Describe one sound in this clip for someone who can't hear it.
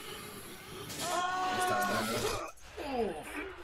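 A man grunts with effort while climbing.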